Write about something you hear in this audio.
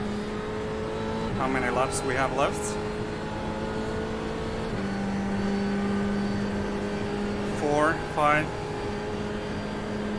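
A racing car engine drones steadily, shifting pitch as the gears change.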